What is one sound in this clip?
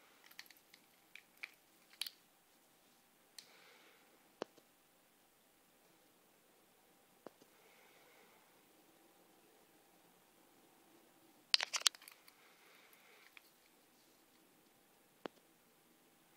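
Fingers click and tap against a plastic watch strap.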